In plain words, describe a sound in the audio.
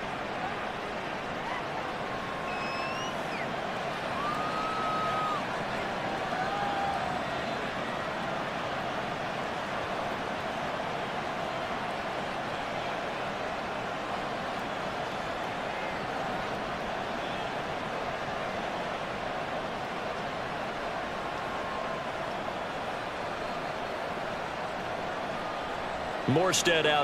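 A large stadium crowd roars steadily all around.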